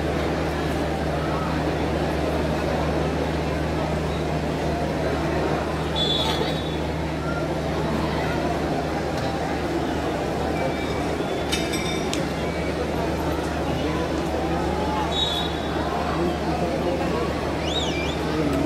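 A large stadium crowd murmurs and cheers steadily outdoors.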